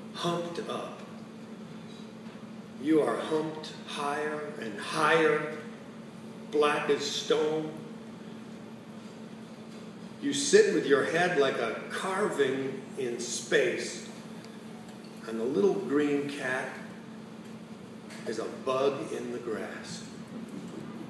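An elderly man speaks calmly into a microphone over a loudspeaker in an echoing hall.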